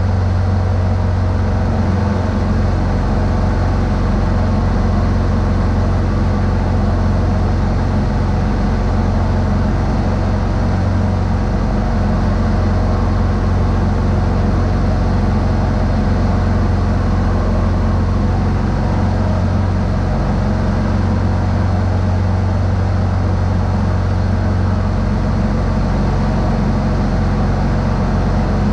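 A snowblower engine drones steadily close by.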